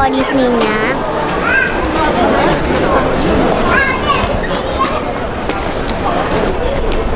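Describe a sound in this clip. A crowd of men and women chatter in a large, echoing hall.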